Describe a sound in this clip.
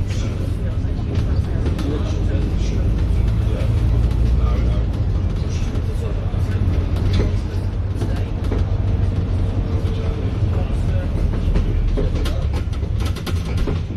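Traffic rumbles steadily along a busy road nearby.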